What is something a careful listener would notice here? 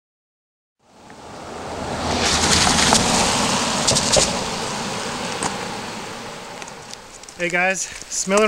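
A car drives past on a wet road.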